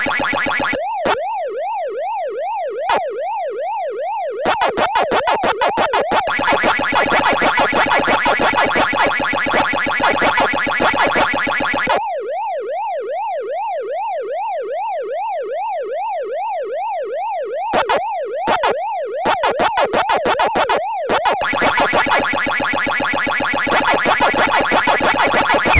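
An electronic siren tone wails up and down steadily.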